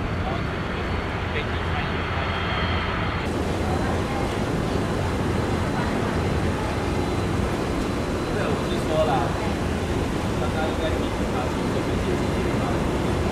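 A jet airliner's engines rumble steadily as it taxis nearby.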